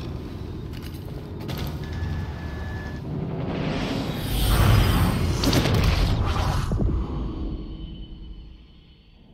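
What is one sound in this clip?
A spaceship engine rumbles low, swells to a loud roar, then fades away.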